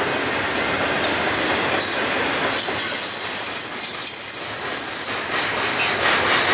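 Metal wheels screech and squeal against the rails.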